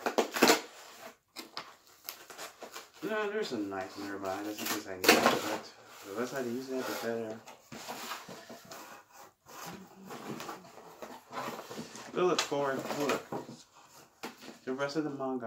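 Cardboard rustles and thumps as a box is handled.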